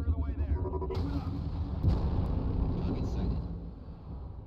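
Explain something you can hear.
Laser cannons fire with a harsh buzzing roar.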